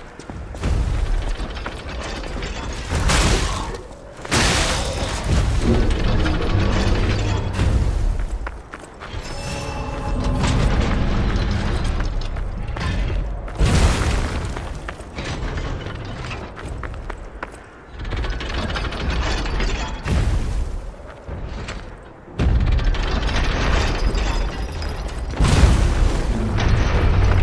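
Blades swing and strike with sharp metallic clangs.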